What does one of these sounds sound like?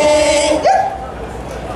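A choir of women sings through loudspeakers and stops.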